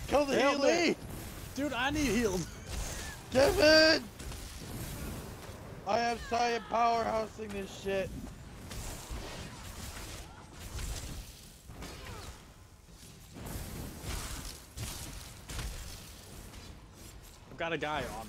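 Magic blasts whoosh and crackle in a fight.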